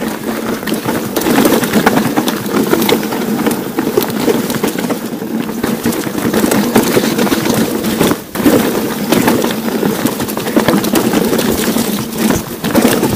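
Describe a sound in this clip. A bicycle frame clatters and rattles over bumps.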